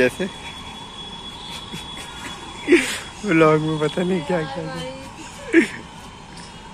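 A young woman giggles shyly close by.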